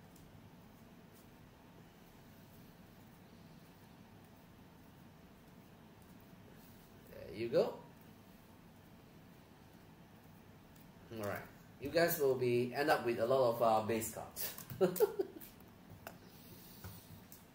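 Stiff cards rustle and flick against each other.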